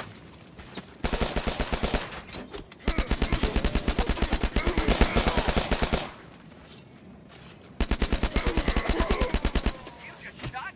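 A machine pistol fires rapid bursts.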